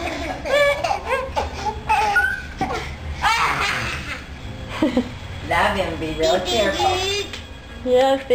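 A baby laughs and squeals loudly nearby.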